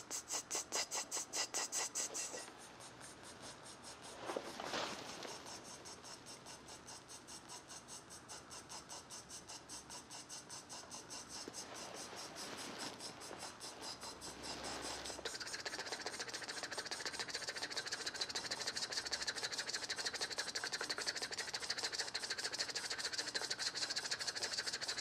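A fast electronic beat pulses steadily through a loudspeaker, growing louder and brighter partway through.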